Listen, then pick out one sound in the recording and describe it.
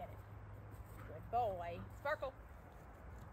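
A woman calls out brightly to a dog outdoors.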